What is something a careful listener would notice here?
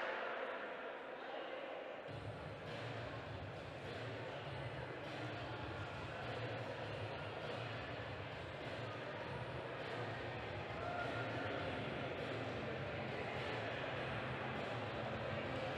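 A crowd of spectators chatters throughout a large echoing hall.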